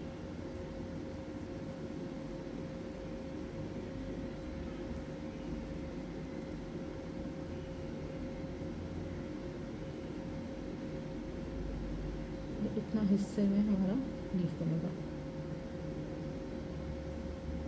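A paintbrush softly dabs thick paint.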